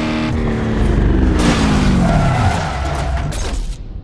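Metal scrapes against a wall with a grinding screech.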